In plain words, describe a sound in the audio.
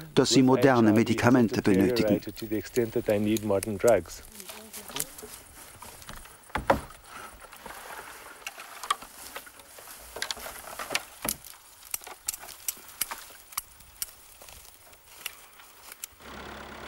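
Dry branches rustle and crackle as they are handled and carried.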